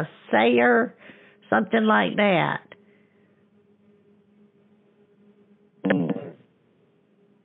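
An elderly woman speaks with animation over a phone line.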